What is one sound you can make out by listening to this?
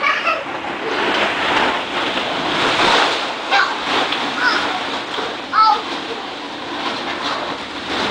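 Plastic balls rustle and clatter as children move through them.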